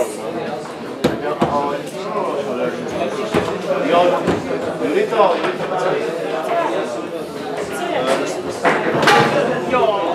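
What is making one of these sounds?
A ball knocks sharply against a foosball table.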